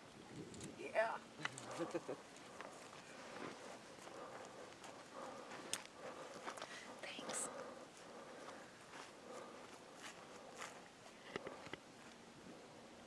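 A middle-aged woman talks calmly close by.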